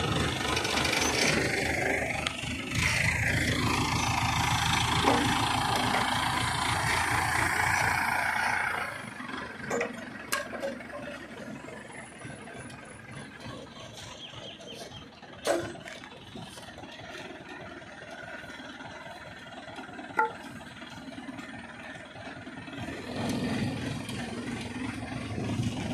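A crane's diesel engine rumbles loudly, then settles to a quieter idle.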